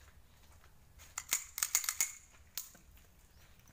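Metal clicks and rattles as a pistol is handled.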